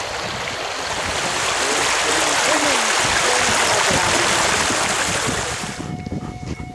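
An animal splashes through shallow water.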